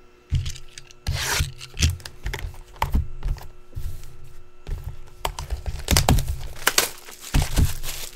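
A cardboard box scrapes and bumps on a table.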